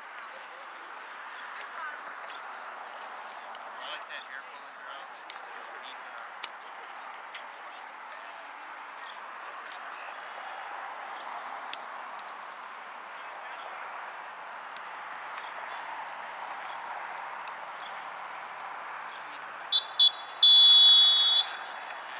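Wind blows steadily across an open field.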